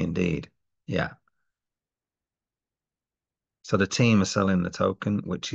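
A middle-aged man talks calmly and close, as if through a webcam microphone, pausing now and then.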